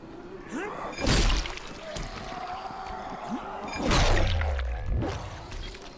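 A weapon thuds heavily into a zombie's body.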